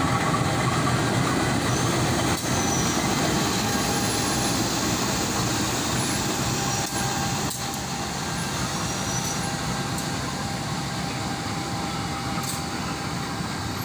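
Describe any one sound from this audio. Train wheels clatter over rails.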